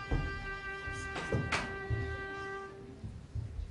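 A violin plays a slow melody.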